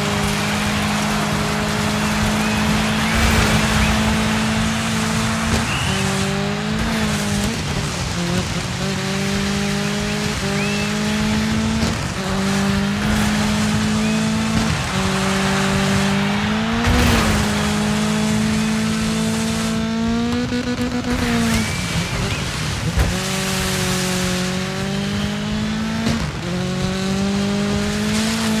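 Tyres crunch and skid over loose dirt.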